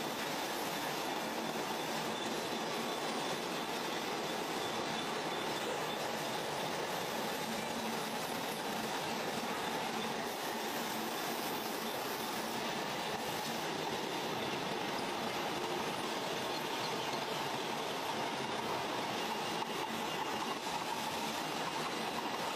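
Factory machinery hums and whirs steadily.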